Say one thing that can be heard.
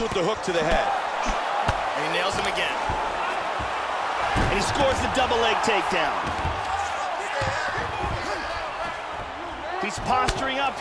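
Punches land with dull thuds on a body.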